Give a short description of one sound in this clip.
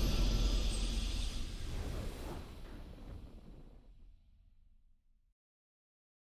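A triumphant game fanfare booms and slowly fades to silence.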